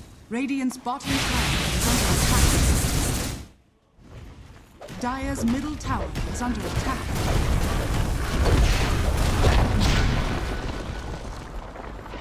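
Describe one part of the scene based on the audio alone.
Game spell effects and hits clash and crackle in a fight.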